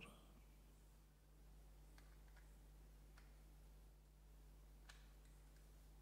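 A plastic part clicks into place.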